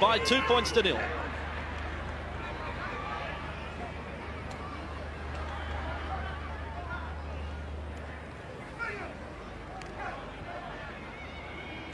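A large crowd murmurs far off in an open stadium.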